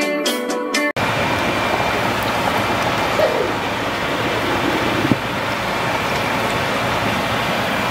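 Water boils and bubbles in a covered pot.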